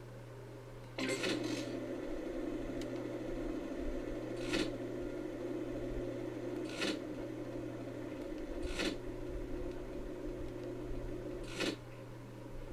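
Slot machine reels spin with a steady whirring.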